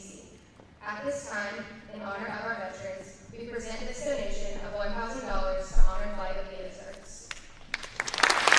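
A young woman speaks calmly into a microphone over loudspeakers in a large echoing hall.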